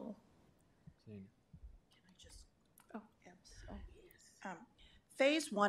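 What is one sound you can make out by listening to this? A woman speaks quietly into a microphone.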